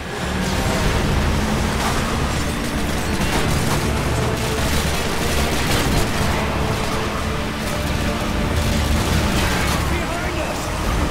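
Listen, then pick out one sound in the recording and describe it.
A vehicle engine roars steadily as it drives fast.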